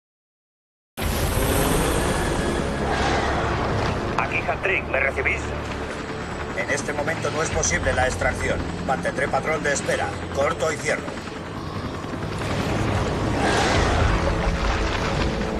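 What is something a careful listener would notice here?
A helicopter engine drones steadily from close by.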